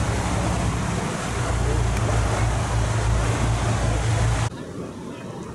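Water churns and rushes in a boat's wake.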